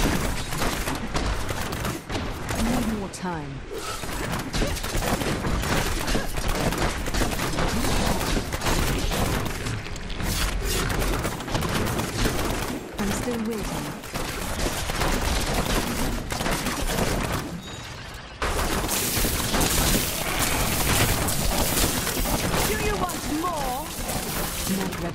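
Video game combat effects burst and crackle rapidly.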